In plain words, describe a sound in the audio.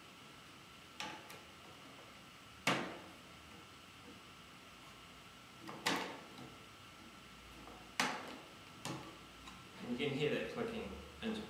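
Wooden pieces knock and clack sharply as they are slotted into a wooden rack.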